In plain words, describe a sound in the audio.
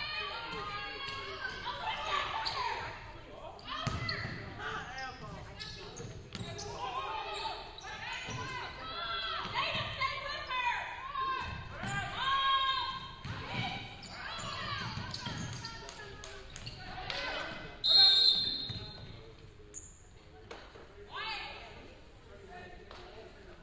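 Young women players shout to each other across the court.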